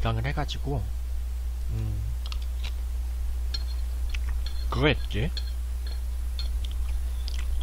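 Utensils clink against a plate.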